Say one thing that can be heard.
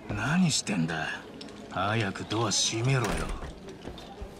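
A man speaks impatiently.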